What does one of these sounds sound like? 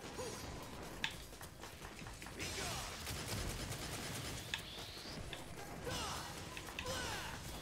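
Sharp metallic clashes and whooshes of a sword fight ring out.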